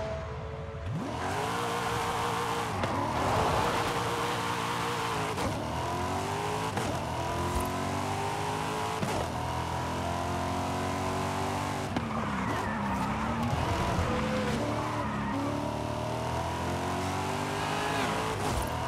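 A sports car engine roars as the car accelerates through the gears.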